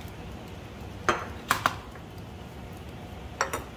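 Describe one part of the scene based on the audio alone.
Glass flasks clink against each other.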